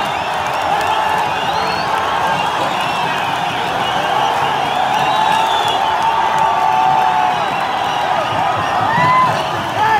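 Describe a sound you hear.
A large crowd cheers and shouts loudly all around in an open stadium.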